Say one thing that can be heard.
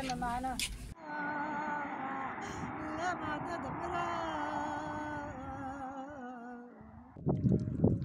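An elderly woman sings a mournful lament nearby.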